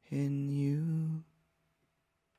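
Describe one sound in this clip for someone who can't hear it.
A man sings a long held note close to a microphone.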